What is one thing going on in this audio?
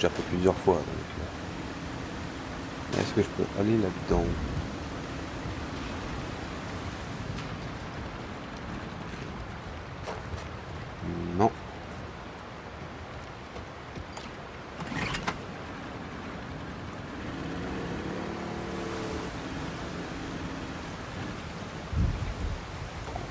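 Water laps against a small boat as it glides along.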